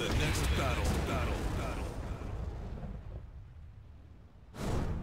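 A deep explosion booms and rumbles away.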